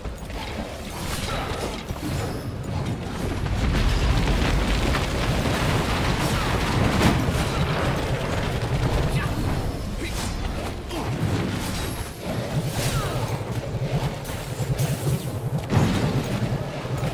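Monsters clash and thud in a busy fight.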